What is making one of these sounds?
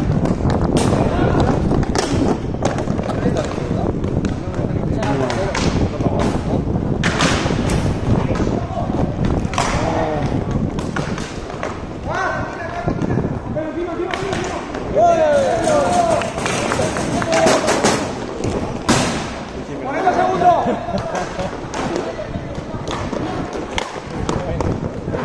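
Skate wheels roll and rumble across a hard rink floor.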